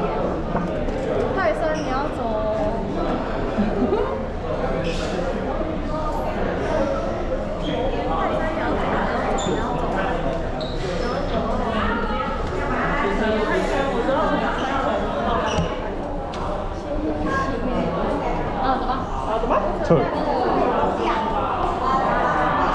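Several young people chatter and talk over one another close by, in an echoing hall.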